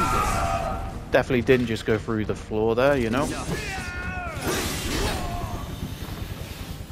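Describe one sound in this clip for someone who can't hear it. A sword swings and clangs against metal.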